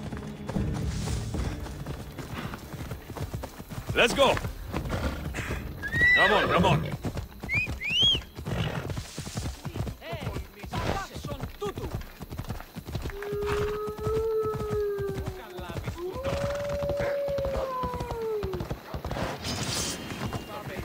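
A horse gallops, hooves pounding steadily on the ground.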